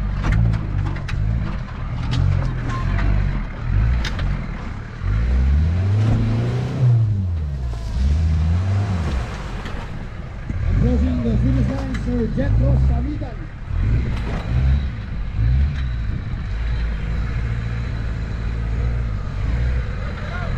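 An off-road vehicle's engine revs and labours up a dirt slope.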